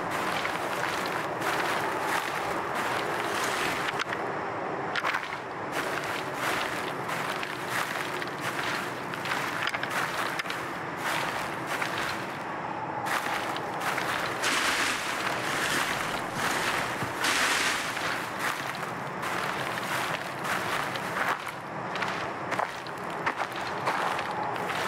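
Footsteps rustle through grass and bushes.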